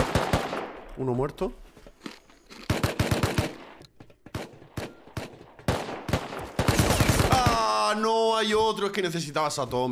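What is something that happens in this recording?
A young man talks loudly into a microphone.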